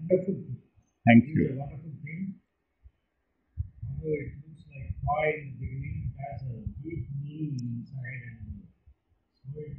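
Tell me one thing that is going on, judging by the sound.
A middle-aged man speaks calmly and explains, close to the microphone.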